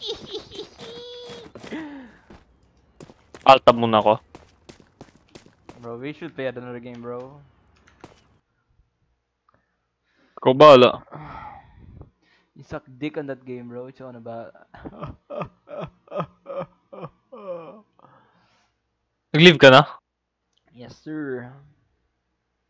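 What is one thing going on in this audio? Young men talk and laugh over an online call.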